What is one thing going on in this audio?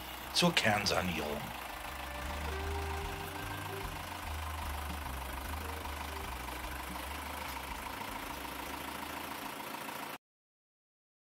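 A tractor engine idles with a low steady rumble.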